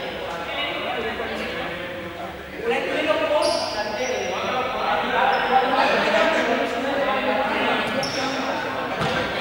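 Children chatter and shout in a large echoing hall.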